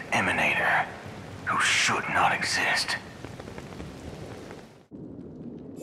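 Rain pours down steadily.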